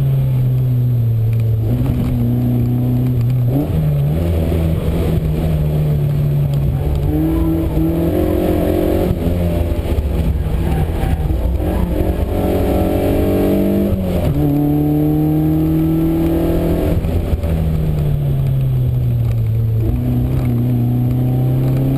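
Tyres squeal through tight corners.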